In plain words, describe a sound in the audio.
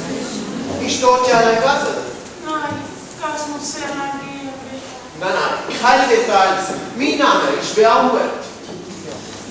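A young woman speaks clearly in a large hall.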